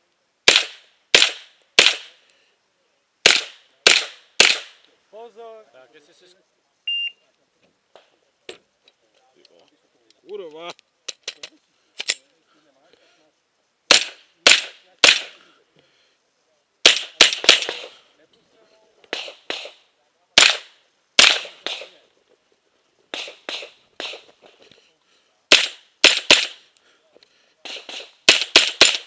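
A semi-automatic rifle fires in quick bursts of two or three shots outdoors.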